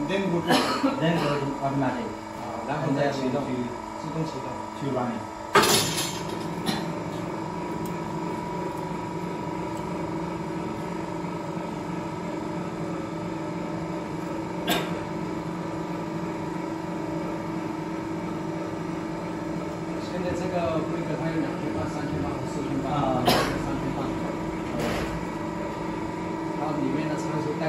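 A machine hums steadily as it winds metal.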